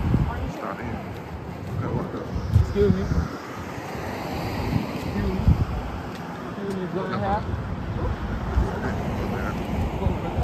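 Footsteps tap on pavement as a group walks outdoors.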